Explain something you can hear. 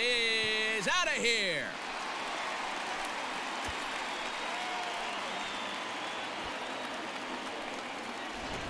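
A large crowd cheers steadily in a stadium.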